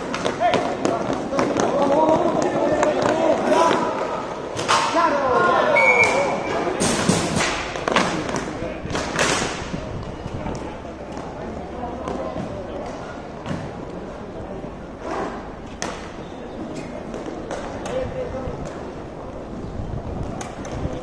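Hockey sticks clack against a ball and the floor.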